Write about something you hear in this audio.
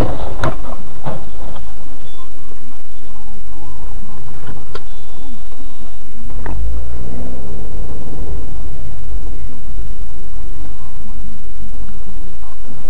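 A car engine hums and tyres rumble steadily on the road.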